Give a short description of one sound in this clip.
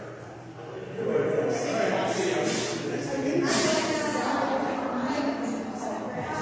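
A woman talks at a distance in a large echoing hall.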